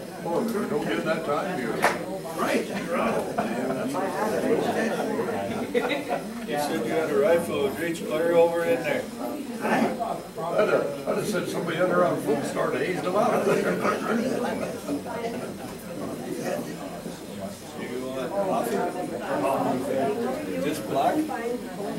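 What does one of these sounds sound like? Several men talk in a room with a slight echo.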